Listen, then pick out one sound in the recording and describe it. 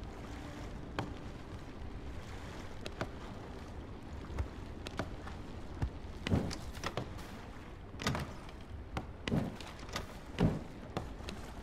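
Soft interface clicks tick now and then as game menus open and items move.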